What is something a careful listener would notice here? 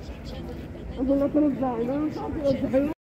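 A woman speaks loudly nearby.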